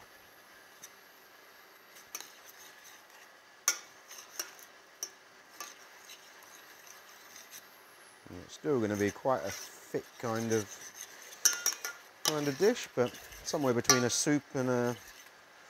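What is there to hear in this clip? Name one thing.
A metal spoon scrapes and clinks against a saucepan.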